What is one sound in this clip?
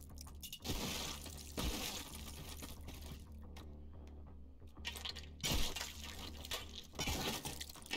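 Stone chunks crash and clatter as they break apart.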